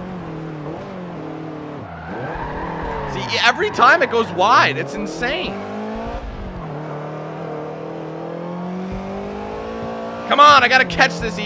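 A car engine hums and revs up and down as gears change.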